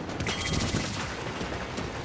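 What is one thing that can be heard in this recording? A laser weapon fires with a buzzing hum.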